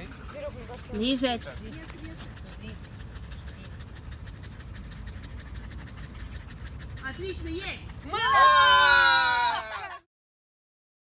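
Dogs yelp and howl together in rising, wavering cries.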